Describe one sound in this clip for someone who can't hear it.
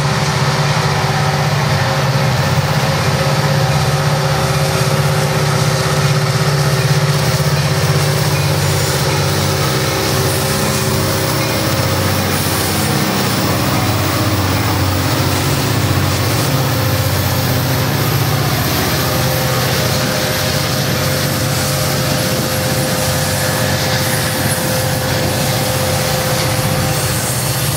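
Diesel-electric freight locomotives rumble past under power.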